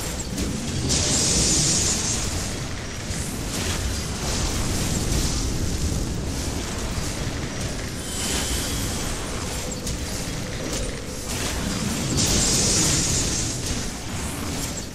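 Deep rumbling booms of battle roll on throughout.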